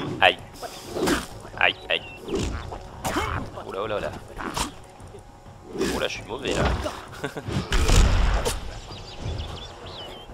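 Weapon blows thud against creatures.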